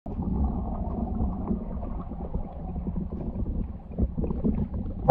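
Air bubbles gurgle and rise through water, heard muffled from underwater.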